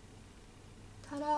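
A young woman speaks calmly, close up.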